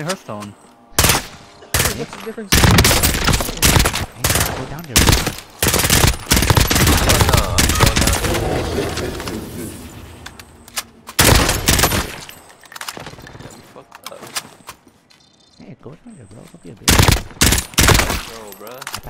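Rifle shots ring out loudly with a sharp echo.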